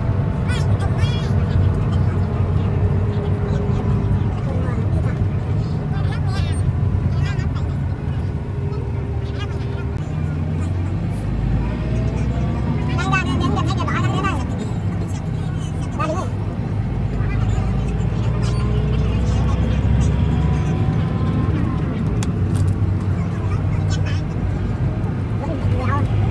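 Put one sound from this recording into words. A vehicle engine rumbles steadily while driving along a road.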